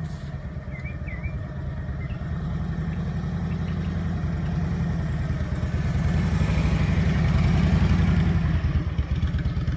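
A motorcycle engine rumbles as it approaches and passes close by.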